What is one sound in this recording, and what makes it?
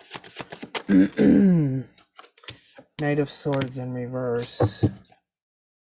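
Cards riffle and slap as a deck is shuffled.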